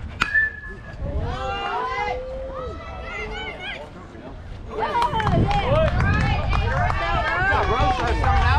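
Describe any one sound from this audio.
Young players cheer and shout excitedly outdoors.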